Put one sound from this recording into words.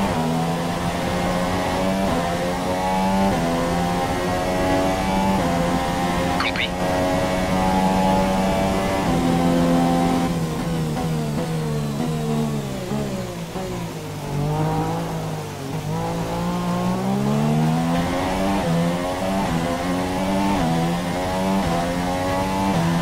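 A racing car engine screams loudly, shifting up through the gears and dropping in pitch when it slows for a corner.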